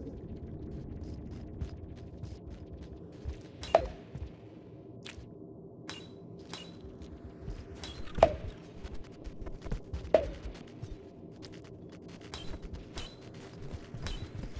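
Light footsteps tap on a hard floor.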